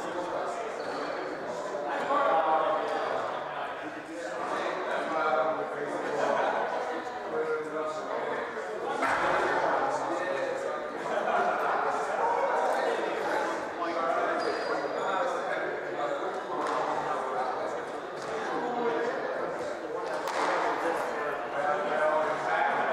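A squash ball smacks sharply against the walls, echoing in a large hall.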